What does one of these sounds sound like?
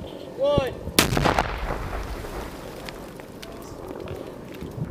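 A loud explosion booms nearby and rumbles away.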